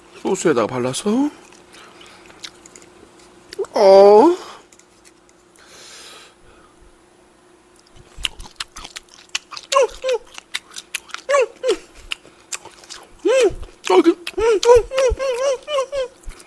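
A metal spoon clinks against a small bowl.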